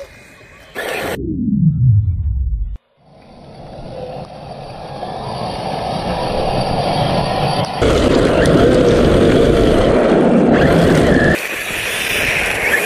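Gravel sprays and scatters as a toy car skids.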